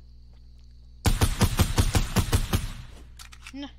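Gunfire from a game crackles in rapid bursts.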